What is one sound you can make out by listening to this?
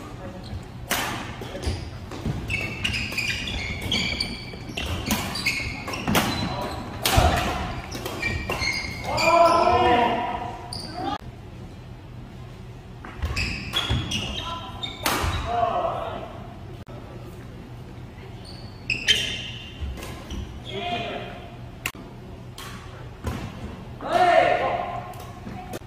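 Shuttlecocks are struck sharply with badminton rackets.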